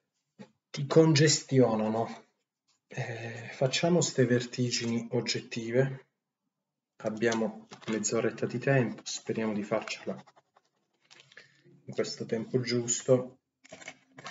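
A young man talks calmly, close to the microphone.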